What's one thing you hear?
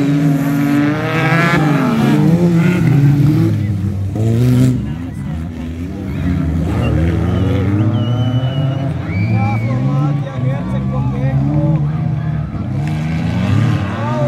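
Racing buggy engines roar and rev up and down close by.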